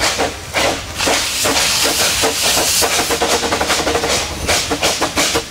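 Steam hisses loudly from a locomotive's cylinders.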